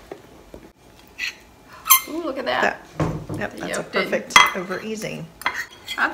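A fork scrapes and taps against a plate.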